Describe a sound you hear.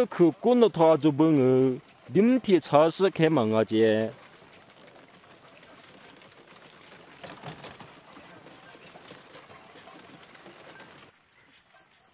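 Wooden cart wheels rumble and creak over rough ground.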